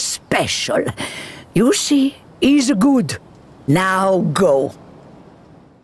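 An elderly woman talks loudly and with animation.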